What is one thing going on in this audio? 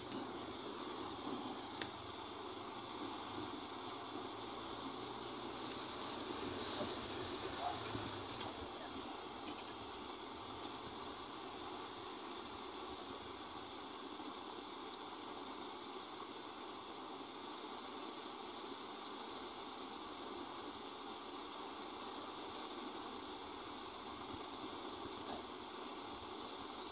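A gas burner hisses steadily outdoors.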